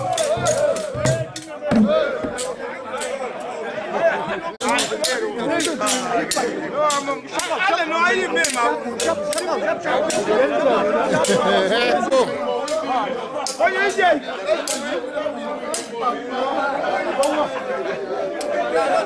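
A crowd of men sing together loudly outdoors.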